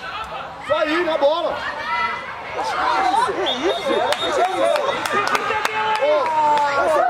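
Boys shout and call out to each other across an open field.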